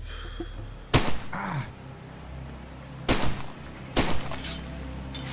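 Gunshots crack.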